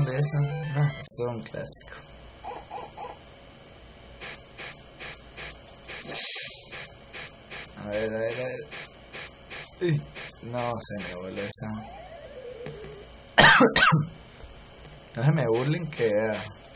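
Electronic video game sounds beep and blip.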